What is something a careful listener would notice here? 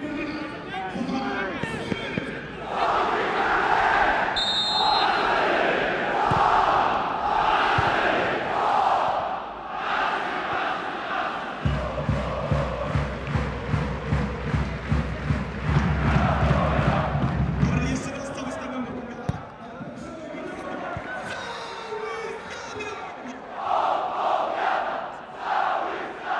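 A large crowd chants and roars in an open stadium.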